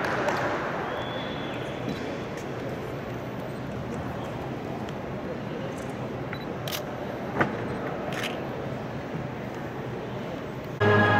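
Voices murmur softly in a large echoing hall.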